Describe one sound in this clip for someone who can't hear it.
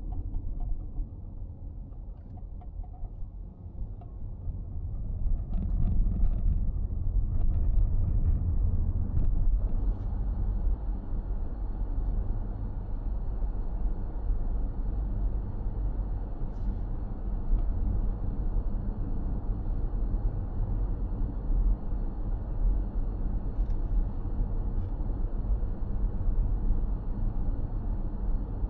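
Tyres roll on the road with a low rumble, growing louder as the car speeds up.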